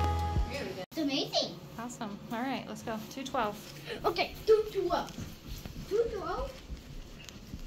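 A young child talks with animation close by.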